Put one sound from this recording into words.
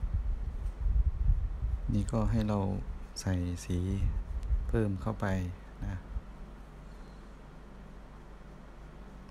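A paintbrush strokes softly on paper.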